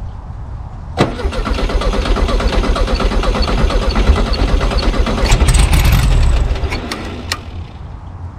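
A car engine cranks over with a steady whirring churn.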